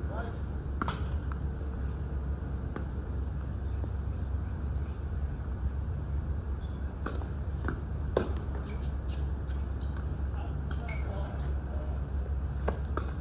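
Tennis rackets strike a ball in a rally outdoors.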